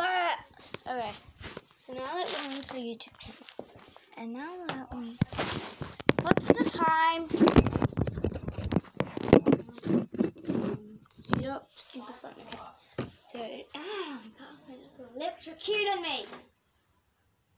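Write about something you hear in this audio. A young girl talks and sings animatedly close by.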